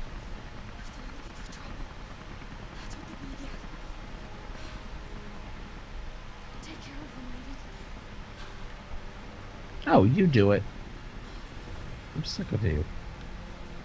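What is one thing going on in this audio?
A young woman speaks tensely, then cries out.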